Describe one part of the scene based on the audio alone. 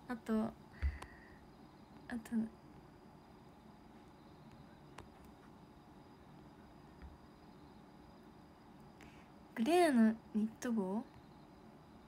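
A young woman speaks softly and playfully close to a phone microphone, with pauses.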